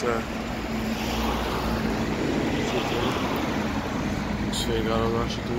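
Traffic rumbles steadily past on a busy city street.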